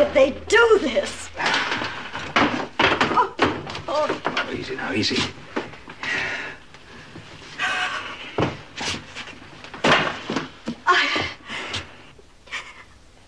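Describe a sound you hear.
Objects knock and clatter as a man rummages through them.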